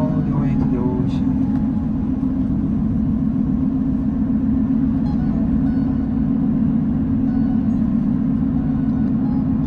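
A car drives steadily along a road with a low, constant rumble.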